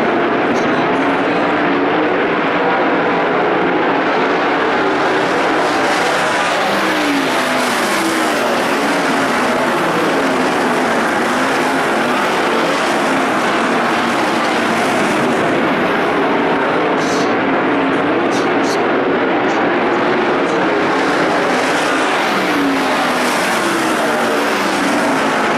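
Racing car engines roar loudly, rising and falling in pitch as the cars speed past.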